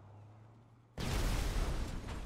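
A car explodes with a loud blast.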